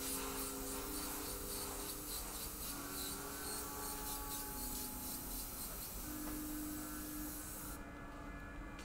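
An airbrush hisses steadily as it sprays.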